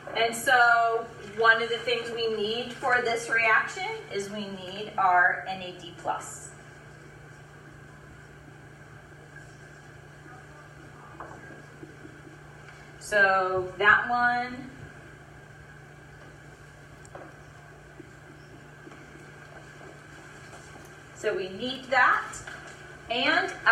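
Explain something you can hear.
A woman lectures clearly, heard from a short distance.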